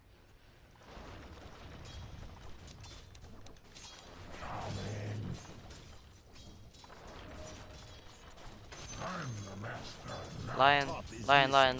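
Game fight sounds clash and crackle with bursts of magic effects.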